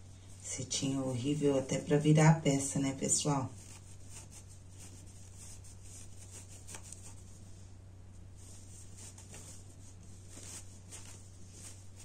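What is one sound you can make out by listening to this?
Fabric rustles softly.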